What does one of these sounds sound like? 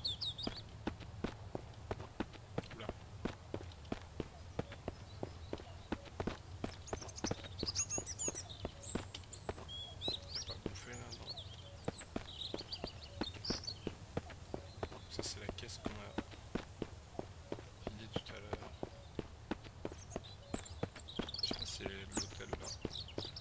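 Footsteps crunch steadily on dirt and then on a paved road.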